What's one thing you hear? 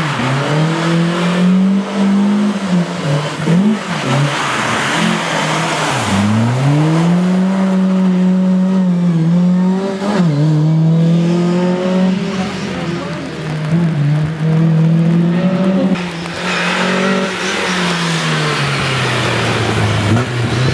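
Tyres hiss and spray water on a wet road.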